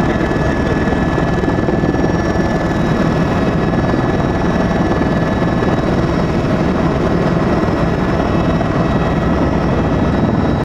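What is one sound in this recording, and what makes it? Wind rushes loudly and steadily past high in the air.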